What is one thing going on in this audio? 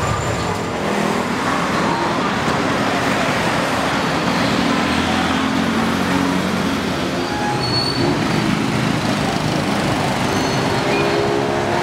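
Traffic hums and rumbles steadily nearby.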